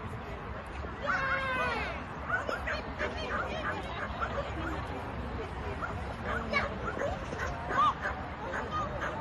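A woman calls out commands to a dog from a distance.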